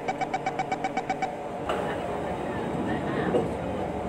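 Train doors slide shut with a thud.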